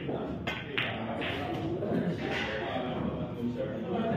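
A cue stick strikes a pool ball with a sharp click.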